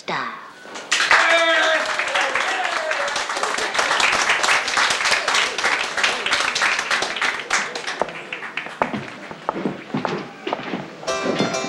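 A crowd applauds and cheers loudly.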